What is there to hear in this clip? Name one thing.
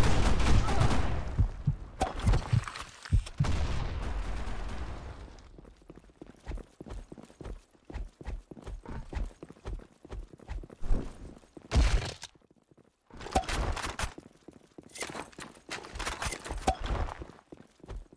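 A knife swishes through the air in quick slashes.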